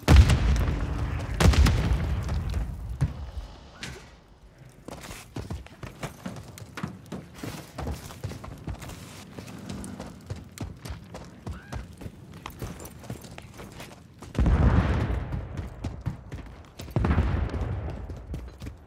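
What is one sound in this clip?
Footsteps run quickly over hard ground and metal.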